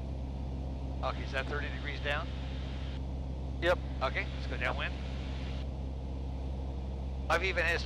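A man talks calmly over a headset intercom.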